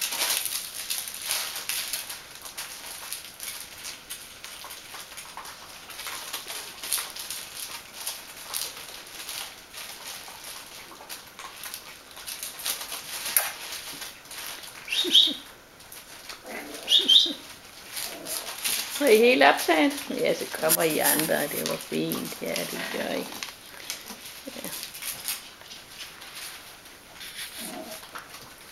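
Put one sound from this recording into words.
Small puppies scuffle and rustle on a soft mat.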